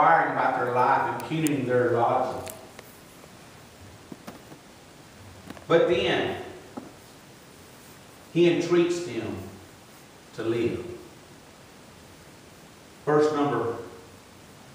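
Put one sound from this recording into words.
A man preaches into a microphone in short, emphatic phrases with pauses, echoing slightly in a large room.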